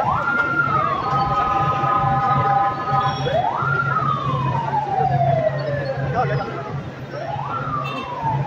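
A man chants slogans loudly through a loudspeaker.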